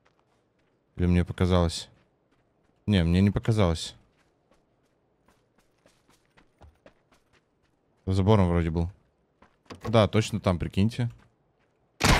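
A young man speaks with animation in short bursts, close to a microphone.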